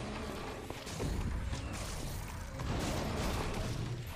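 Fiery blasts whoosh and crackle.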